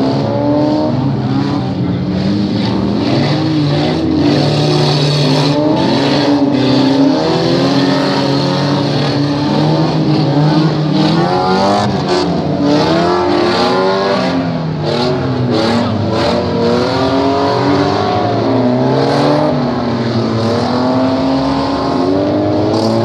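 Several car engines roar and rev loudly nearby.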